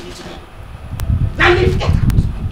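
A woman speaks animatedly in reply.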